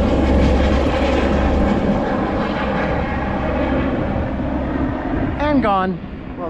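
A helicopter drones overhead and slowly fades.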